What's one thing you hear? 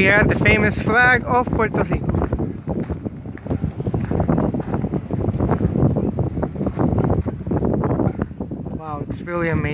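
A flag flaps in the wind.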